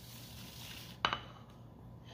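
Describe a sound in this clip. A plate clinks down onto a stone countertop.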